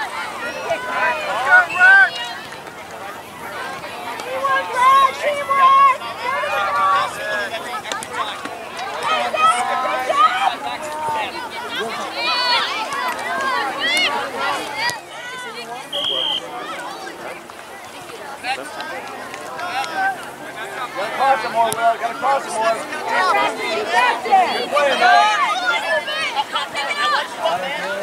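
Spectators on the sidelines shout and cheer outdoors.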